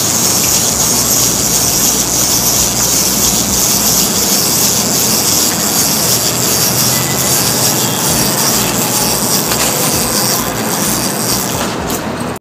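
A wind-up toy whirs and clicks as it walks on pavement.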